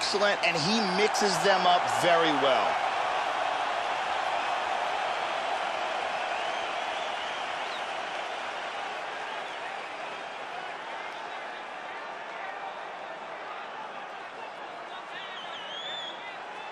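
A large crowd cheers and roars in a big echoing arena, slowly fading.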